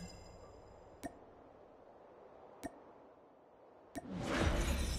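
Game menu clicks sound sharply a few times.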